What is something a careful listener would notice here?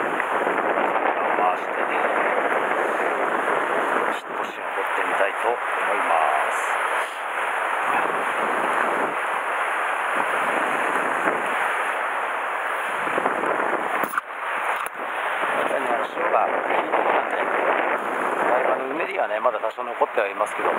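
Waves wash and break against rocks nearby.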